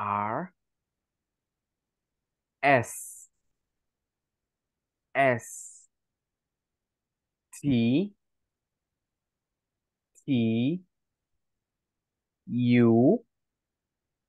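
A woman speaks clearly over an online call, saying single words one at a time with pauses between them.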